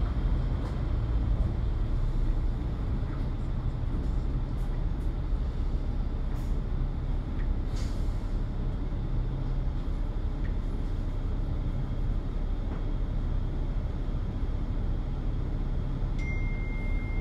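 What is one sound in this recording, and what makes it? Light rattles and knocks come from a bus body.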